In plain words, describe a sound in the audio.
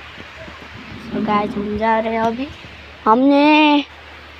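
A boy speaks close by, with animation.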